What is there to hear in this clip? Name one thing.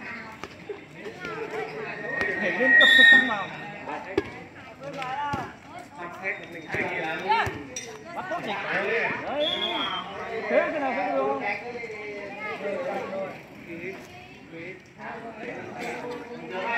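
Several young women shout and cheer with animation outdoors.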